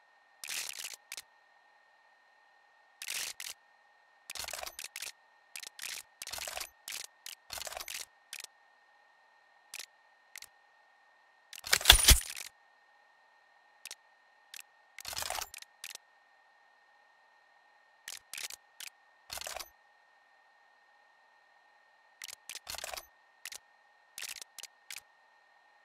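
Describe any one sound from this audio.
Short game menu clicks and swishes sound as options change.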